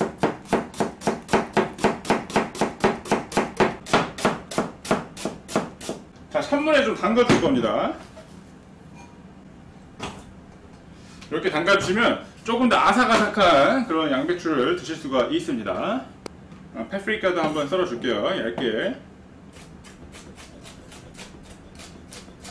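A knife chops quickly on a cutting board.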